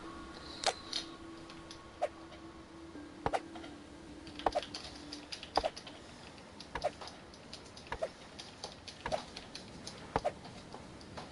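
A blade chops repeatedly into a tree trunk with sharp knocks.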